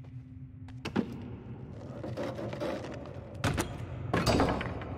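A hammer knocks against a wooden door.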